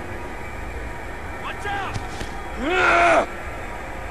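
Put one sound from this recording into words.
A body drops heavily onto a hard floor.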